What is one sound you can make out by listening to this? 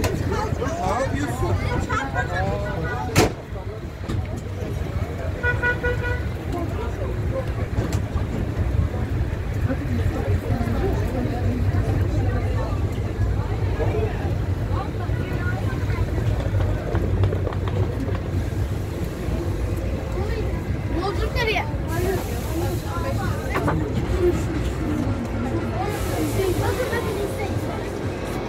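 A small train rumbles steadily along.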